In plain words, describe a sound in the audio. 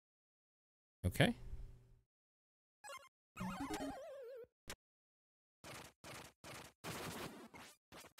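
Retro electronic game sound effects blip and warble in short bursts.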